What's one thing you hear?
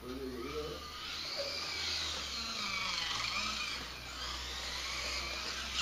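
A toy car's electric motor whines as it speeds past.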